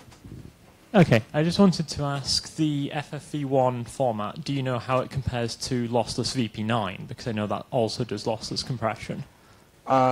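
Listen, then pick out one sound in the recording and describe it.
A man speaks to an audience through a microphone in a large echoing hall.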